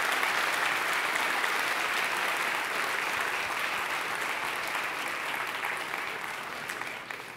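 A large audience applauds in a big hall, slowly fading.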